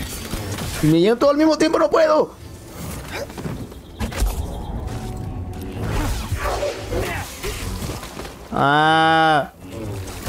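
A lightsaber hums and whooshes as it swings.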